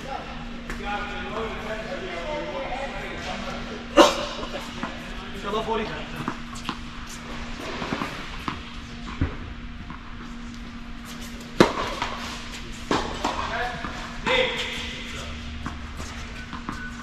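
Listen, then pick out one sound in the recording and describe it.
Tennis balls are struck with rackets and bounce on a hard court, echoing in a large hall.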